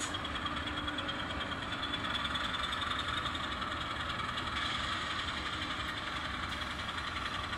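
A model train rumbles and clatters steadily along its track.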